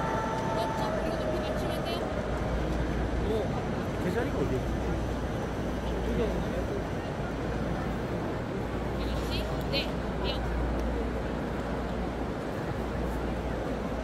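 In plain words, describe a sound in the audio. A huge crowd murmurs and chatters throughout a vast open stadium.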